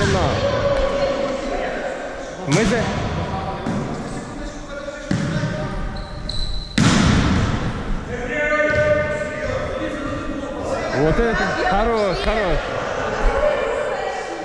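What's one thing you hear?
Several people call out and shout in a large echoing hall.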